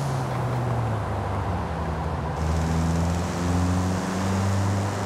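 A car engine hums and revs up steadily as the car speeds along.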